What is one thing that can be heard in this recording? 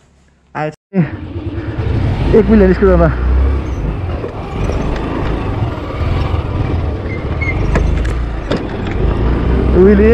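A scooter engine runs and hums while riding.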